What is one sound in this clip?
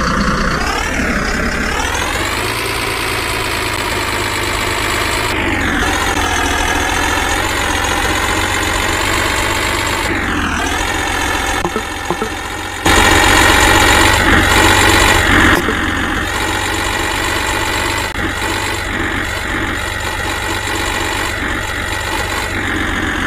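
A tractor engine drones steadily, its pitch rising and falling.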